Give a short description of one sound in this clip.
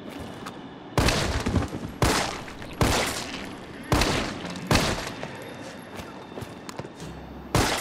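Loud pistol shots ring out one after another, echoing through a large hall.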